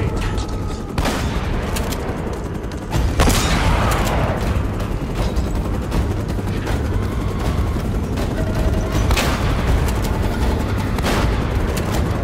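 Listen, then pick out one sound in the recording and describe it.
Gunshots bang loudly and echo.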